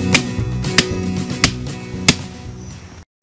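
A hammer strikes a metal fence post with sharp ringing clangs.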